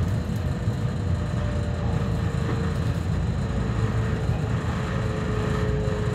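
A vehicle rumbles steadily as it rides along.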